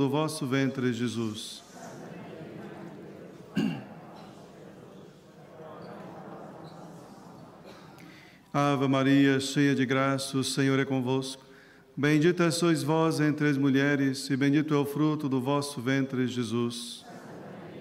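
A man chants prayers through a microphone in a large echoing hall.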